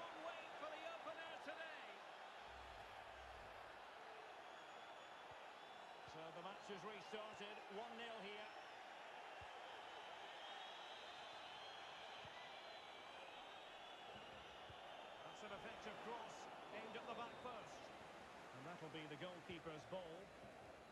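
A large crowd roars and cheers steadily.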